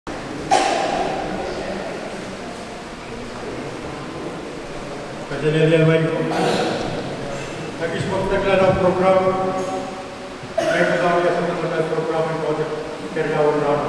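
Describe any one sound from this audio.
A man speaks steadily into a microphone in a large echoing hall.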